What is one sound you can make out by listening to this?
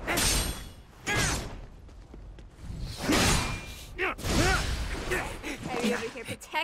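Flames whoosh and roar in bursts.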